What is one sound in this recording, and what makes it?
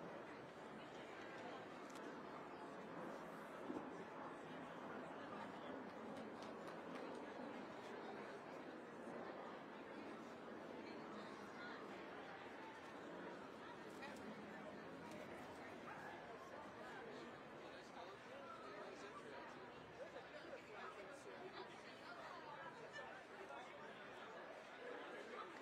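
A crowd murmurs in a large indoor arena.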